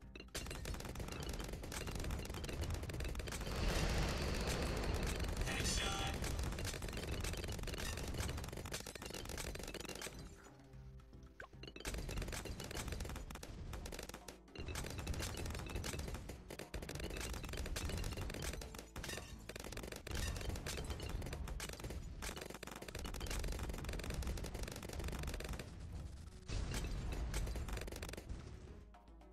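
Game balloons pop rapidly in quick bursts.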